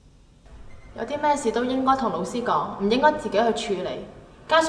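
A young woman speaks calmly and earnestly, close by.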